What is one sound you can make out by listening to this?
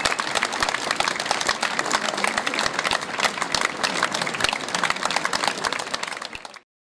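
An audience claps and applauds outdoors.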